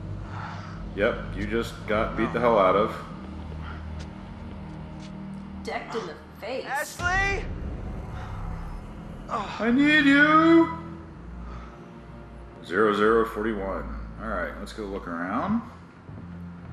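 A young man calls out anxiously, shouting a name.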